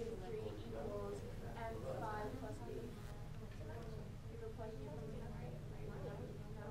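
A man speaks calmly and explains nearby.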